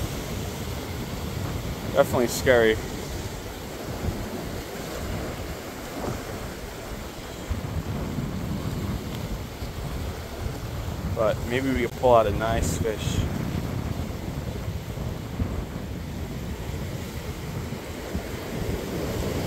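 Waves wash and splash against rocks below, outdoors.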